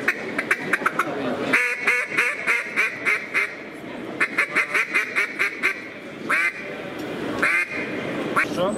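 A man blows a duck call close by, making loud rapid quacking bursts.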